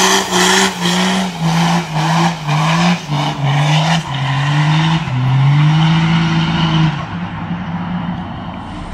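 A truck engine roars and revs hard in repeated bursts.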